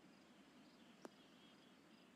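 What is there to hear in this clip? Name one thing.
A golf ball lands with a soft thud.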